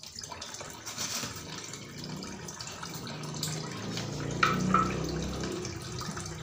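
Water splashes as hands rub something in a bowl.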